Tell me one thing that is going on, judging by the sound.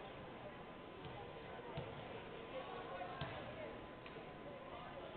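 A basketball bounces on a hardwood court.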